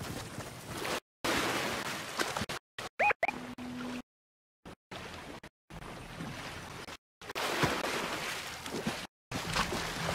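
Water splashes as a game character swims.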